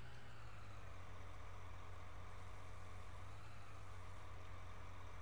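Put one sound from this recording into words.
A hydraulic crane arm whines as it moves.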